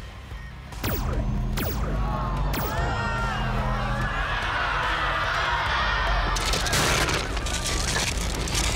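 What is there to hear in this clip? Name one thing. Loud booming noise blares from huge loudspeakers.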